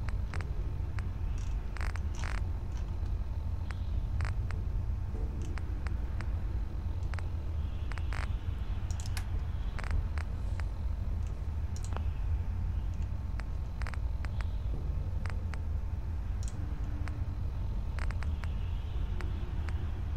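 Short soft menu clicks tick repeatedly as a list is scrolled.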